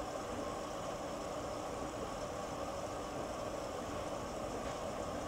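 Water sloshes and laundry tumbles inside a washing machine.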